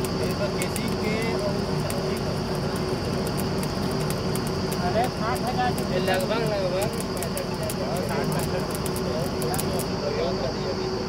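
A drilling rig's diesel engine runs with a steady, loud rumble.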